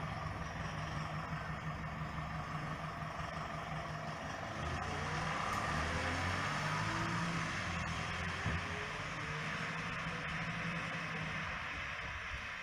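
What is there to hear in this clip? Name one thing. A bus engine rumbles as the bus pulls away and drives off.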